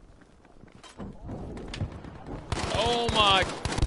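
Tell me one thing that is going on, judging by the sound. Gunfire rattles loudly in rapid bursts.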